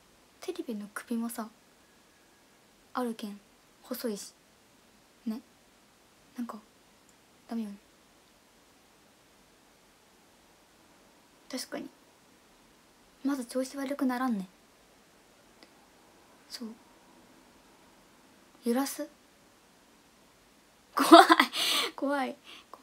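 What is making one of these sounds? A young woman speaks softly and haltingly, close to a microphone, with long pauses.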